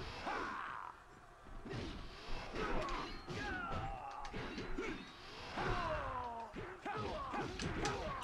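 Swords slash and strike in a video game fight.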